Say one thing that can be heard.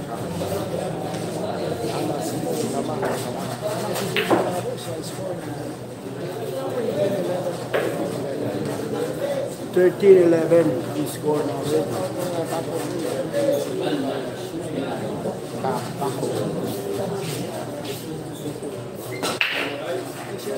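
A crowd of young men chatters steadily nearby.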